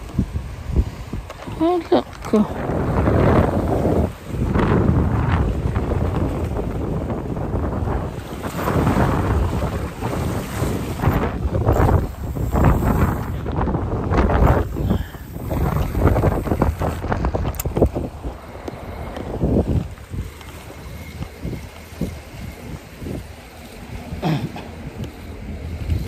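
Strong wind gusts buffet loudly outdoors.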